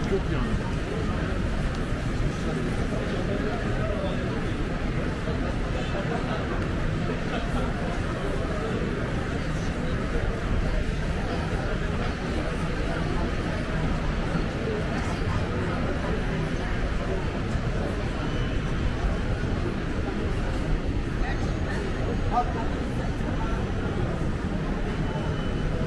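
A crowd of people chatters in the background outdoors.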